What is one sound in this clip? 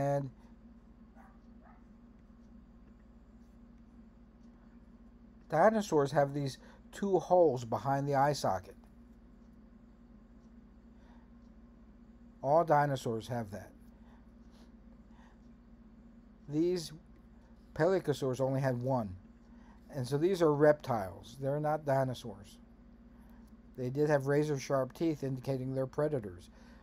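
A middle-aged man talks calmly into a computer microphone, in short bursts with pauses.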